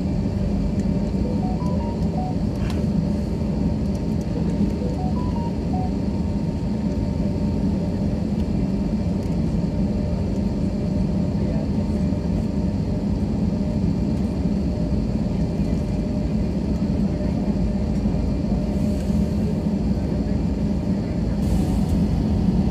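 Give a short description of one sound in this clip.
Jet engines hum and roar steadily from inside a cabin as an airliner taxis.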